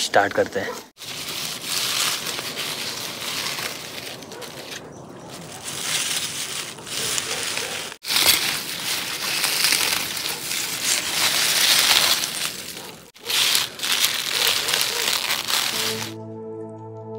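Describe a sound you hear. A sickle cuts through leafy plants with a crisp rustling.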